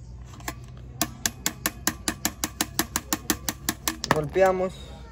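A tool clicks rapidly and evenly on a bicycle wheel hub.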